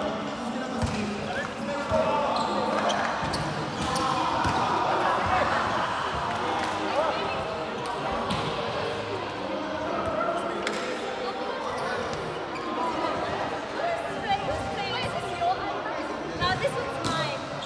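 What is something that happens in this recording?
Young men and women chatter and call out across a large echoing hall.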